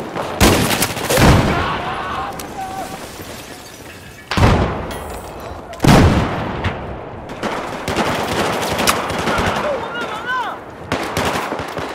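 Gunshots crack loudly and echo.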